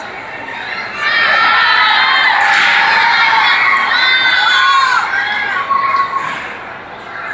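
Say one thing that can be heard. A man calls out loudly to an audience in a large echoing hall.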